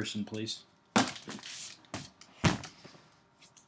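A cardboard box is set down with a dull thump.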